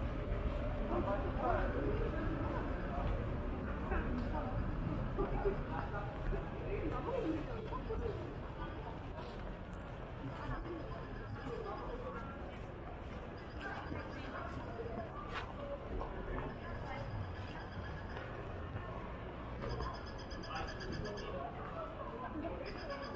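Footsteps tap on paving.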